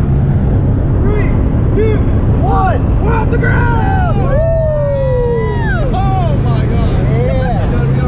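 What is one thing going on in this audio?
A young man shouts with excitement close by.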